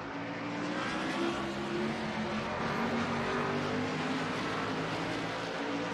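Racing car engines roar loudly at high revs.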